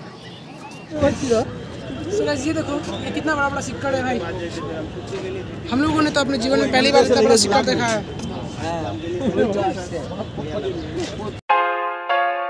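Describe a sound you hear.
A young man talks close by with animation.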